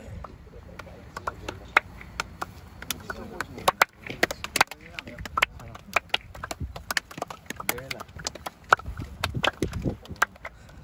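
Hands slap together as players shake hands.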